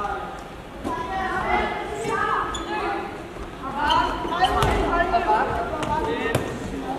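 Young boys shout and call out to each other in a large echoing hall.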